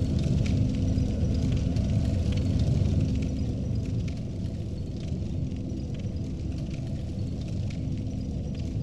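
A fire crackles and pops steadily.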